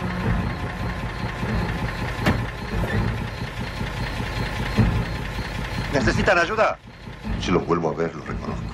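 An engine idles steadily.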